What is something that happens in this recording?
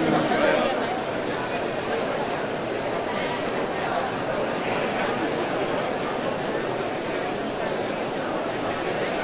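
A large crowd of men and women chatters in a big echoing hall.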